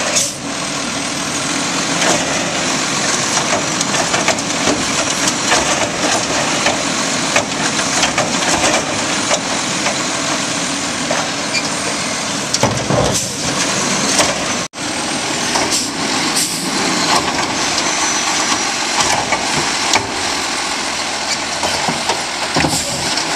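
A hydraulic arm whirs as it lifts and lowers a bin.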